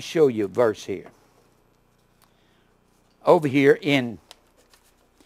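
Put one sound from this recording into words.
An older man speaks calmly into a microphone, in short phrases.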